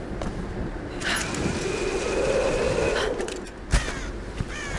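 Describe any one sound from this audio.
A rope line hisses and whirs as someone slides down it.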